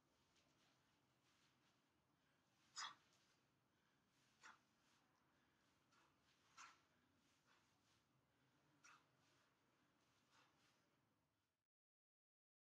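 Feet shuffle and tap lightly on artificial grass.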